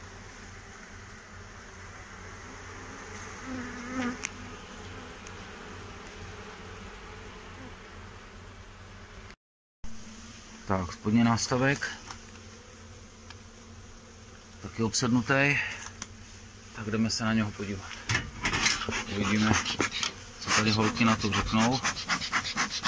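Bees buzz and hum steadily up close.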